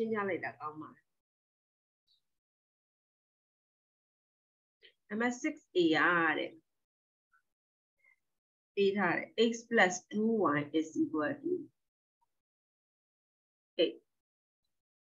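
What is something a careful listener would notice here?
A middle-aged woman speaks calmly over an online call, explaining in short phrases.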